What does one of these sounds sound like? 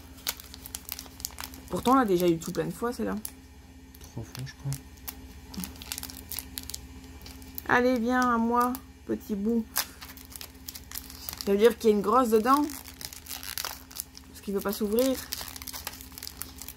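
A foil wrapper crinkles and rustles between fingers.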